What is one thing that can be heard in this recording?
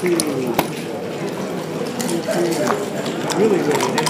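A game clock button clicks.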